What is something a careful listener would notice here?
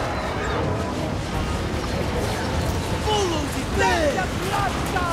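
A large battle rumbles with the low roar of clashing armies.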